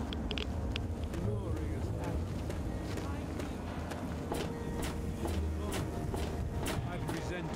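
Footsteps thud across creaking wooden boards.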